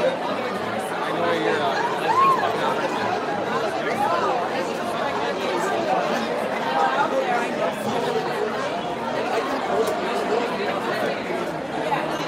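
A man and a woman talk close by.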